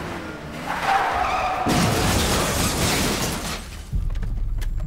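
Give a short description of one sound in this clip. A car crashes into a van with a loud crunch of metal.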